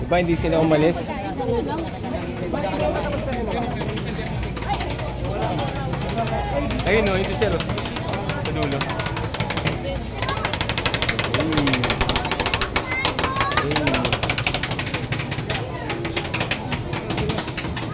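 A crowd chatters all around.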